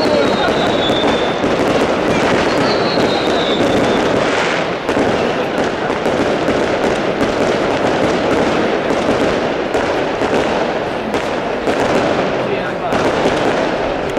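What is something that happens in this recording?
Fireworks burst and crackle in the sky with sharp bangs.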